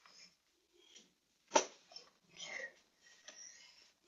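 Fabric rustles as a blanket is draped over a chair.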